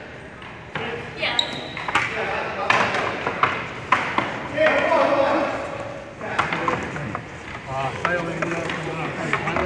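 Men talk and call out to each other in a large echoing gym.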